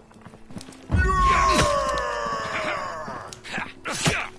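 A magic spell bursts with a shimmering, ringing whoosh.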